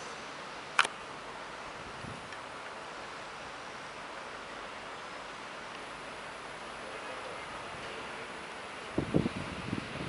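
An electric train rolls slowly into a station with a steady low rumble.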